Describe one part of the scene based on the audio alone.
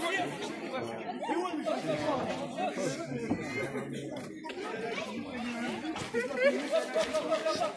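A crowd of young people shouts and chatters outdoors.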